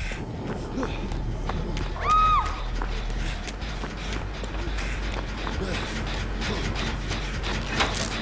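Footsteps run over grass and ground.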